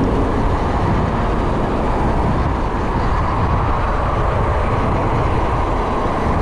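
Wind rushes over a microphone on a moving bicycle.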